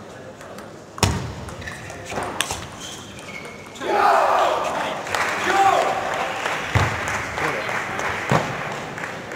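A table tennis ball clicks sharply off a paddle and the table in a large echoing hall.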